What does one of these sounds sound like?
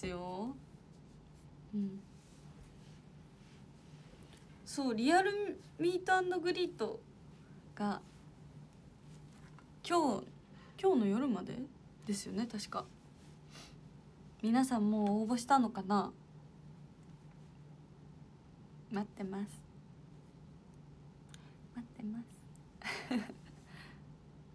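A young woman talks with animation close to a microphone, pausing now and then.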